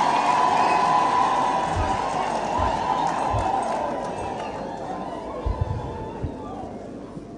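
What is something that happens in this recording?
A large crowd cheers and ululates, slowly fading.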